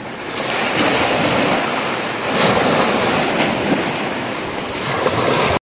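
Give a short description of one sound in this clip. Waves wash up onto a beach and foam.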